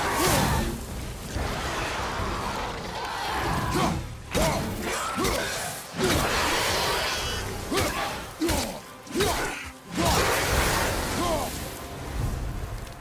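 An axe strikes with heavy, thudding blows.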